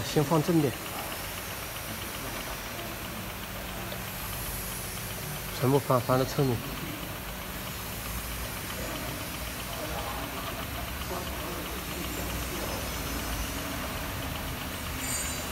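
A machine hums steadily nearby.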